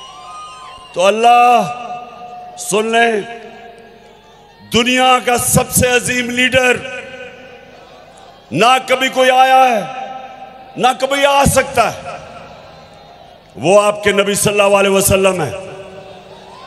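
A man speaks forcefully through a loudspeaker in short, ringing bursts with pauses between them.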